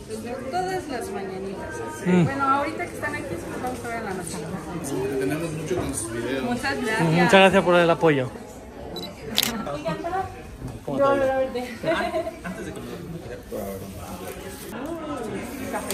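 A young woman answers warmly close by.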